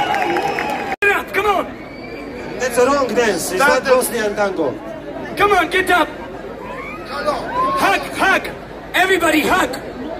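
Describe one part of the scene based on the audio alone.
A group of men sings loudly through loudspeakers.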